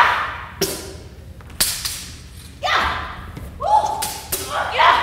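Wooden swords knock sharply against shields, ringing in an echoing hall.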